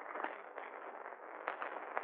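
Cutlery rattles on a plate.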